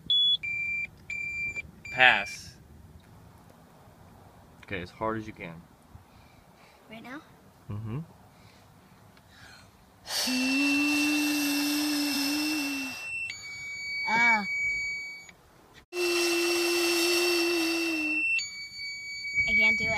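An electronic device beeps in short high tones.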